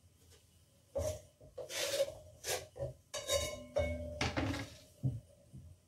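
Chopped food scrapes into a metal bowl.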